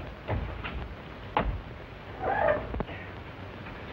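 Two men scuffle and thud against a heavy metal door.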